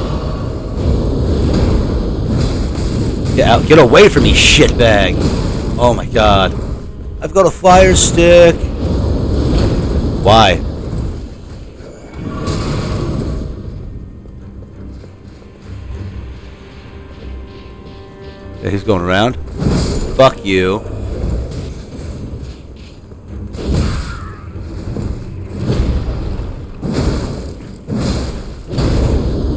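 Swords clash and slash in a fight.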